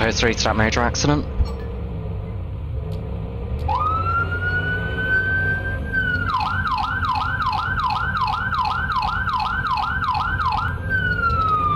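A car engine hums as a car drives along a street.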